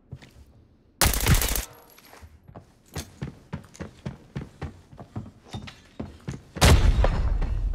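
A rifle fires a loud shot that echoes.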